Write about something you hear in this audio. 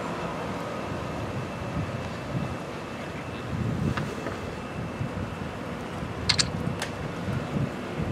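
Footsteps walk along a paved street outdoors.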